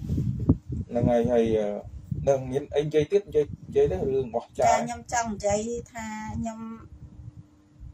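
A middle-aged woman speaks close to a microphone.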